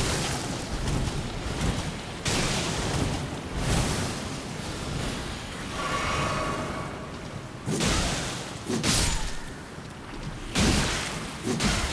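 Footsteps splash through shallow, muddy water.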